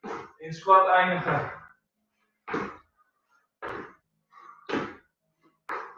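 Feet thump on a wooden floor as a man jumps.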